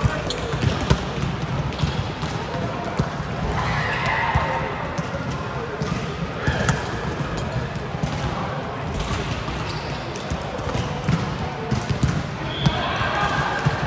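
Volleyballs thump on hands and bounce on a hard floor, echoing in a large hall.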